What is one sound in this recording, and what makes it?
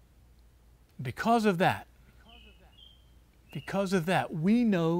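A middle-aged man speaks calmly and clearly, close by, outdoors.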